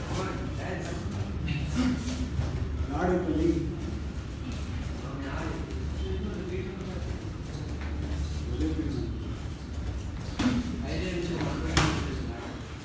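Punches and kicks thud against gloves and bodies.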